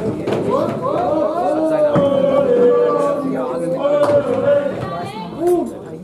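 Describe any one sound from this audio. A man talks loudly nearby in a large echoing hall.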